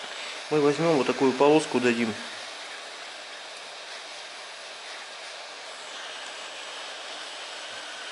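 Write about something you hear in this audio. A heat gun blows with a steady, airy hiss.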